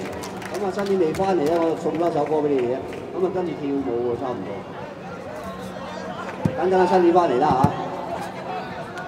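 A man sings through a loudspeaker outdoors.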